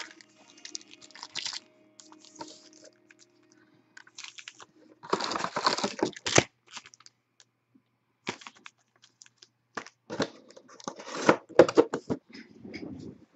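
Foil card packs crinkle and rustle as they are handled and stacked.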